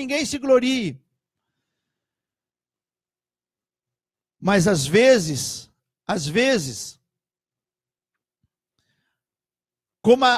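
A middle-aged man speaks calmly and closely into a microphone, with long pauses.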